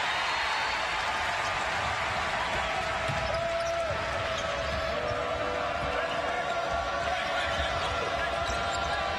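A large indoor crowd murmurs and cheers steadily.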